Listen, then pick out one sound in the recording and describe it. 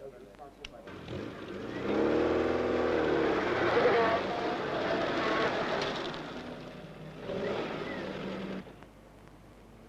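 A car engine rumbles as a car drives by.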